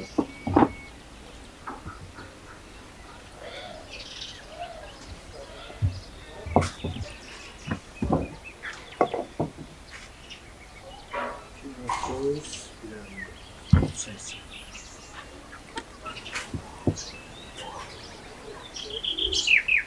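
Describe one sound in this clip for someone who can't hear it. Hands pat and press soft dough on a wooden board.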